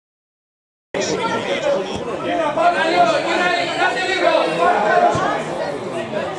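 Spectators talk and call out close by outdoors.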